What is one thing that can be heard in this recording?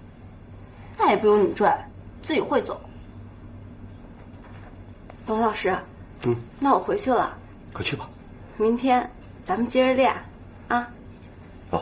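A young woman answers calmly, close by.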